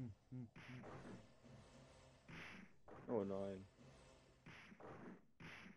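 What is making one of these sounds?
Punches and kicks land with short, crunchy electronic hit sounds.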